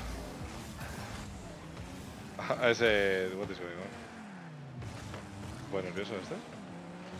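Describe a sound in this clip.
A game car's engine hums and revs.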